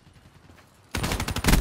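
A light machine gun fires a rapid burst.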